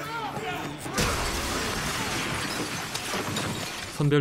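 Glass shatters loudly and fragments scatter.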